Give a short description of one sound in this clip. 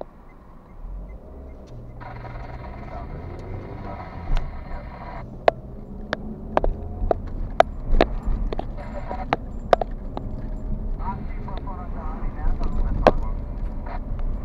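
A car engine hums and tyres rumble over the road as the car drives off.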